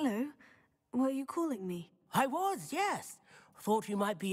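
A young woman answers briefly in a friendly voice.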